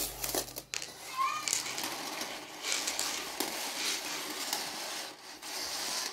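Plastic coils slide and scrape across a table.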